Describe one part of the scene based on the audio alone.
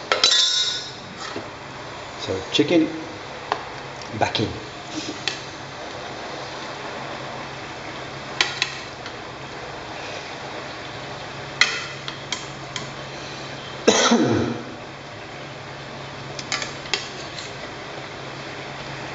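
A sauce simmers and bubbles softly in a pan.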